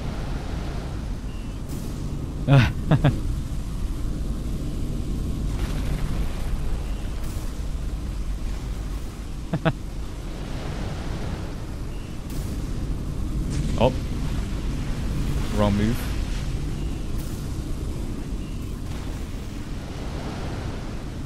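Magic blasts rumble and crackle steadily.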